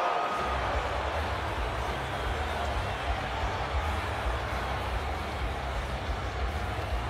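A large crowd murmurs and roars steadily in an echoing arena.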